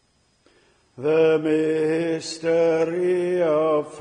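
A man's voice comes through a microphone.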